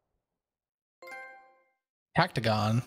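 A bright electronic chime rings once and fades.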